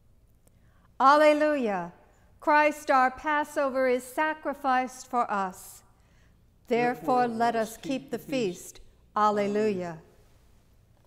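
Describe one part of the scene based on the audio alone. A woman chants in a sung voice through a microphone.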